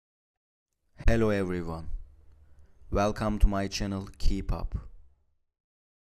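A woman speaks with animation, close to the microphone.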